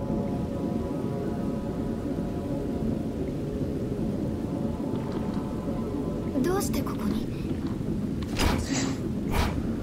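A train carriage rumbles steadily.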